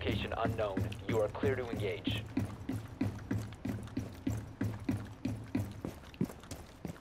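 Footsteps thud quickly up metal stairs.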